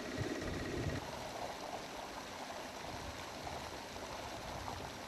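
Water gushes and splashes from a pipe.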